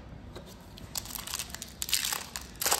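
A foil card pack crinkles in someone's hands.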